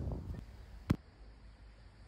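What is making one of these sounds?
A foot kicks a ball with a dull thud.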